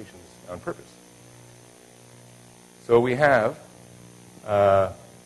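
A man speaks in short phrases through a microphone.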